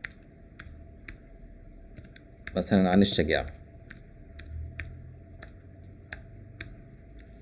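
Keyboard keys click as someone types.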